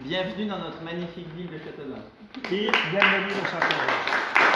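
An older man speaks to a small group, close by.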